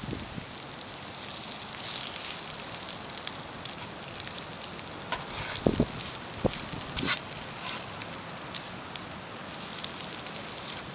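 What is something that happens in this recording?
A metal spatula scrapes and taps against a griddle.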